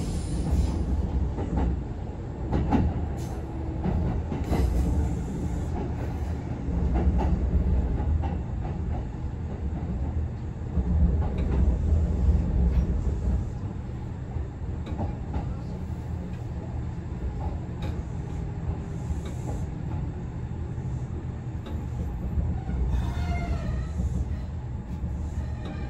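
A train rumbles steadily along the tracks and gradually slows.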